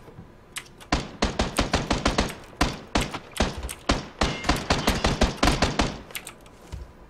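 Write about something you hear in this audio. Rapid gunfire rattles loudly from a game.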